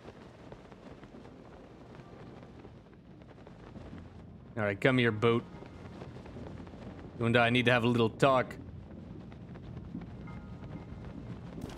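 Wind rushes past steadily during a glide.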